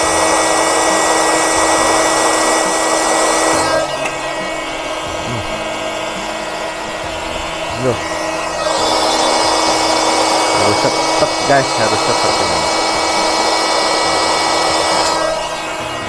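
An electric air pump whirs steadily, stops, then starts again.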